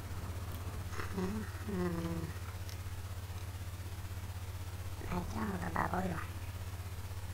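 A young man speaks briefly and calmly into a close microphone.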